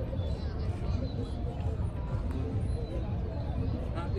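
Adults chat in low voices nearby.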